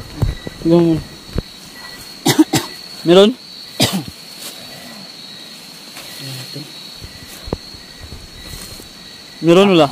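Leaves and stems rustle as hands push through dense plants close by.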